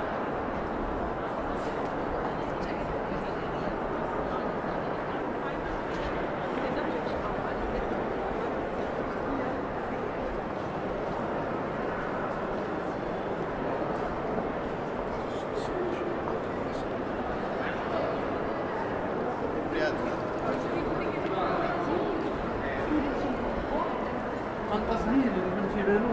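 Footsteps tap on a hard stone floor.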